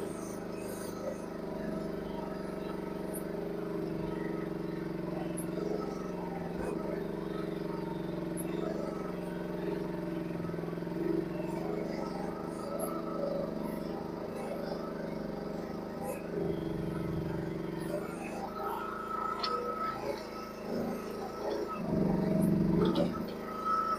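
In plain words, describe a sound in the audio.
A small excavator's diesel engine hums steadily close by.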